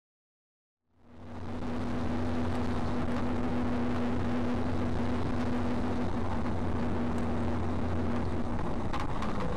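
An engine drones inside a moving vehicle.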